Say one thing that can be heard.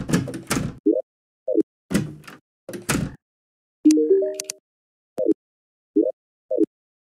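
Short swooping game menu tones pop in and out.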